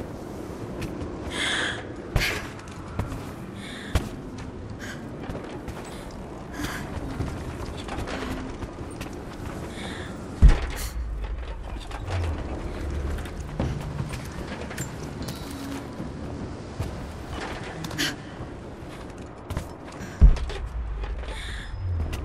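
Footsteps thud and creak on wooden planks.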